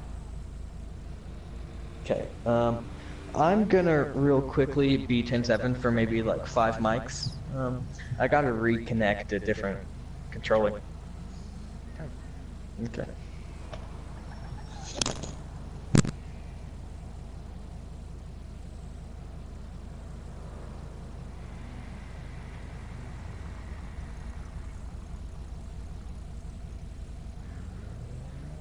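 A car engine idles with a low, steady rumble.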